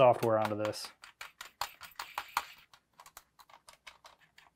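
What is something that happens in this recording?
Hands click and tap against a hard plastic handheld console.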